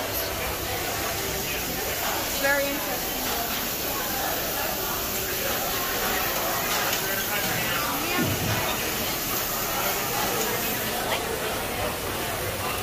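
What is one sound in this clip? Many people chatter in a busy, echoing indoor space.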